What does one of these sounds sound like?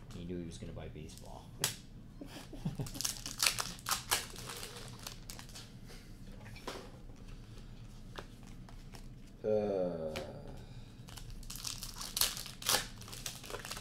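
Trading cards slap and shuffle on a table.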